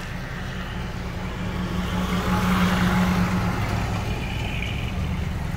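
A large truck rumbles past close by.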